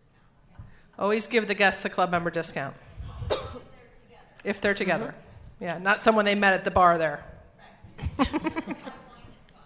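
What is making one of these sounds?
An elderly woman speaks clearly into a microphone in a large hall.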